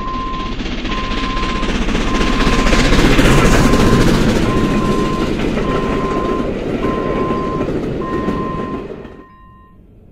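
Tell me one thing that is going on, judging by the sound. Train wheels clatter and rumble over the rails, then fade away.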